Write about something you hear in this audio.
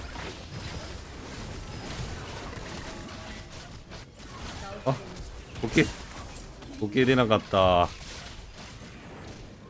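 Video game spell and hit effects crackle and thud in quick bursts.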